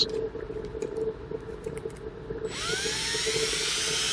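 A drill chuck clicks as it is tightened.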